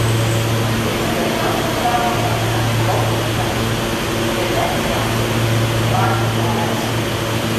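A crowd murmurs on the platform.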